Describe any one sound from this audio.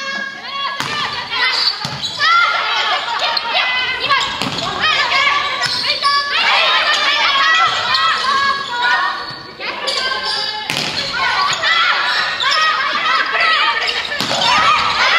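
A volleyball is struck with sharp slaps that echo through a large hall.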